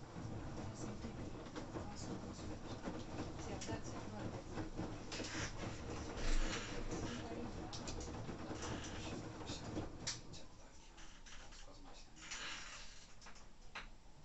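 A washing machine drum tumbles laundry with a steady rumble.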